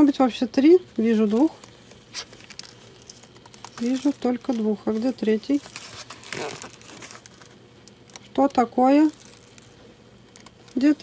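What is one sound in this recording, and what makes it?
A thin plastic container crinkles as it is handled.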